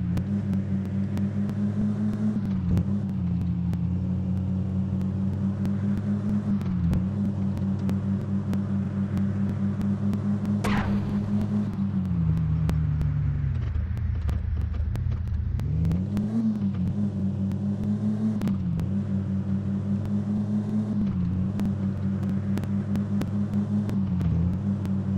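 A car engine drones steadily, dropping in pitch as the car slows and rising again as it speeds up.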